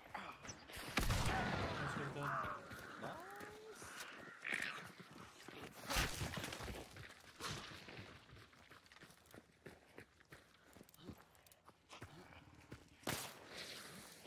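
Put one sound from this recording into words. A pistol fires loud single shots.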